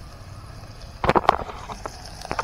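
A metal lid clatters against a pot.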